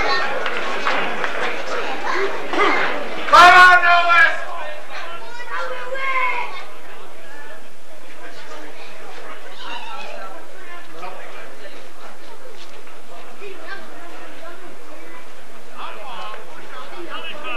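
Men shout to each other outdoors during a rugby scrum.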